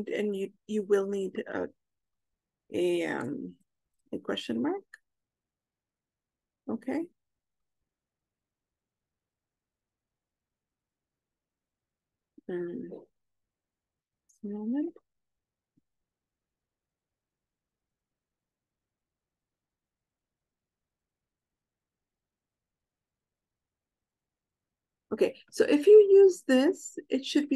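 A young woman speaks calmly through an online call, in short bursts with pauses.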